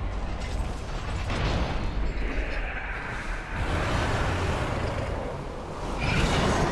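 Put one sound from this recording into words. Magic spells crackle and burst in a fast, noisy fight.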